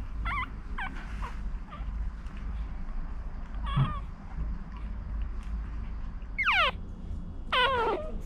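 Newborn puppies squeak and whimper in high, gliding cries.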